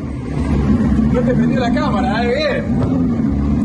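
A man in a car speaks with animation.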